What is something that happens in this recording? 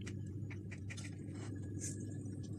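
A knife taps and scrapes against a plate.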